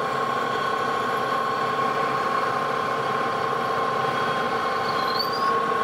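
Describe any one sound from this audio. A drill bit grinds into spinning metal.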